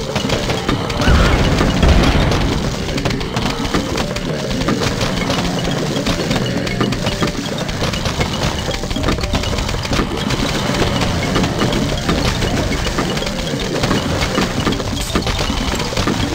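A game's explosions boom with a deep rumble.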